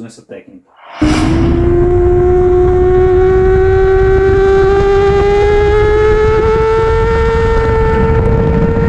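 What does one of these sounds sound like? A motorcycle engine roars at high revs, its pitch slowly climbing.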